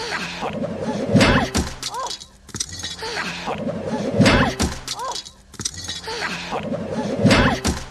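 A young woman gasps in alarm.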